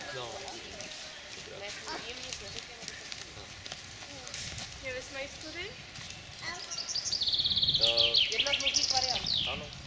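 Children talk to each other while running.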